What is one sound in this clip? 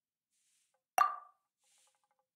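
A soft interface click sounds once.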